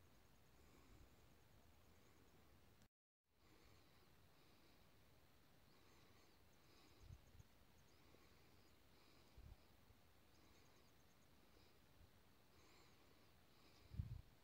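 Wind gusts across an open field.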